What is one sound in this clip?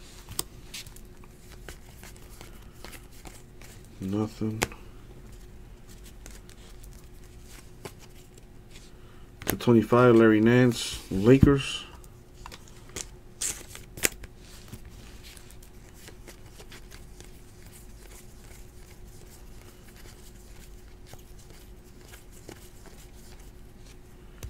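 Trading cards slide and flick against each other as they are sorted through by hand.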